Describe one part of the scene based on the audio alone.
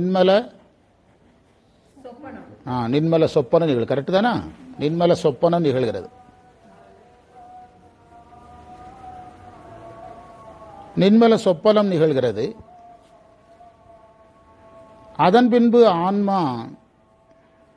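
A man sings through a microphone in short phrases.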